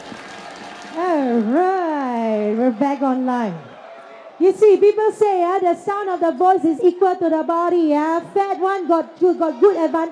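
A young woman speaks with animation through a microphone over loudspeakers in a large room.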